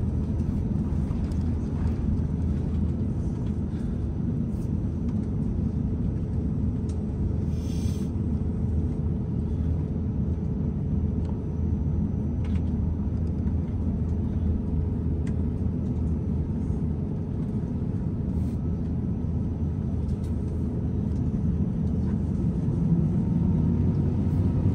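Aircraft wheels thump softly over joints in the taxiway.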